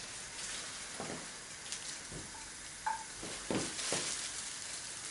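Kitchen utensils clink and tap against a pan.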